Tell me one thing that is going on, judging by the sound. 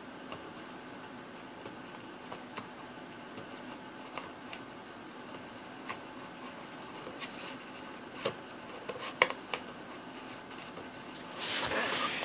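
A puppy scrabbles and scratches at a cardboard tube.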